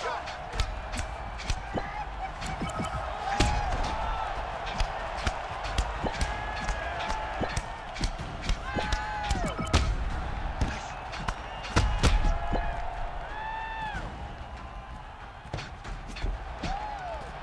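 Punches land with sharp thuds.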